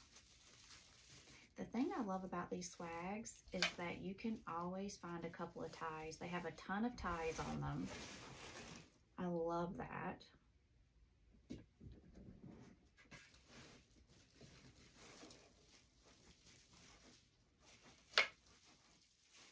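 Dried flowers rustle as a young woman handles them.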